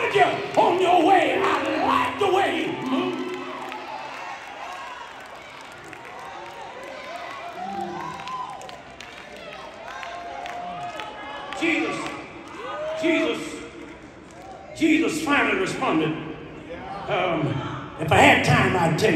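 A man speaks with animation through a microphone, echoing in a large hall.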